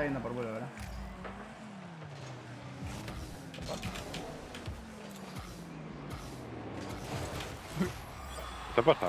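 A car engine hums and revs, rising and falling in pitch.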